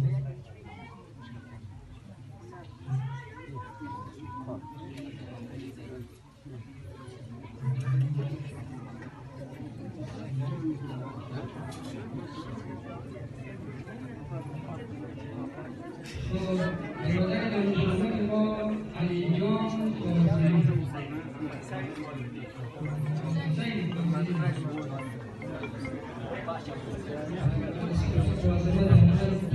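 A crowd of men and women murmurs and chants in a large echoing hall.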